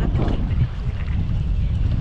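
A hooked fish splashes at the water's surface.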